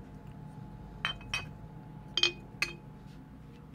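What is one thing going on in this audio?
Glass bottles clink against each other as they are set on a shelf.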